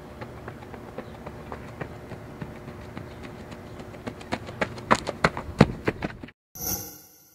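Cleats crunch rhythmically on dirt as a runner sprints.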